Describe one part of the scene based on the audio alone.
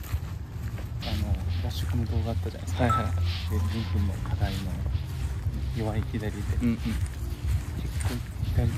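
A young man talks calmly, close by.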